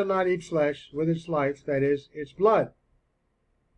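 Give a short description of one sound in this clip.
A man speaks calmly into a microphone, close by.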